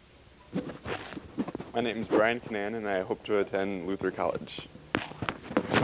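A teenage boy speaks into a microphone.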